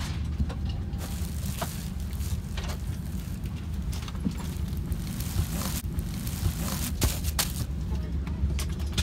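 A plastic wrapper crinkles and rustles as it is handled.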